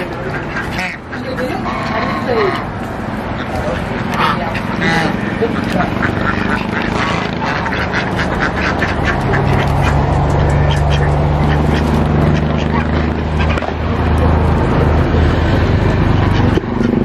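Many ducks quack noisily close by.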